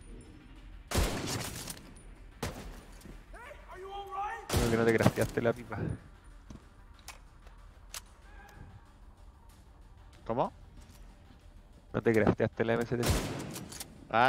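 A rifle fires sharp, loud shots several times.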